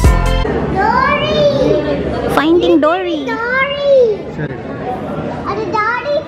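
A young child calls out with animation nearby.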